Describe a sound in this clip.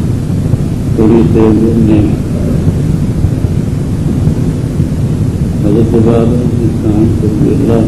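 An elderly man speaks slowly through a microphone.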